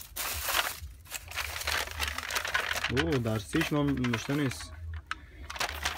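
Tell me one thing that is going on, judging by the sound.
Aluminium foil crinkles and rustles loudly up close.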